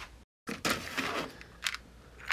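A plastic drawer slides out of a cabinet with a scrape.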